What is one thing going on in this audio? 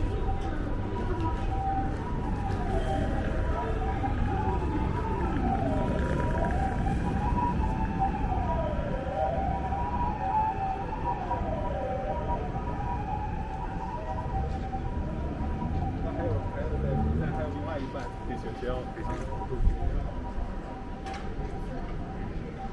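A busy street hums with low traffic noise outdoors.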